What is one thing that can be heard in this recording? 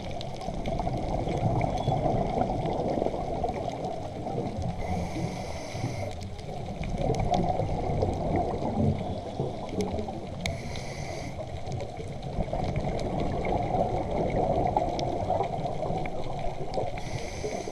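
Underwater, a steady muffled rumble of moving water surrounds the listener.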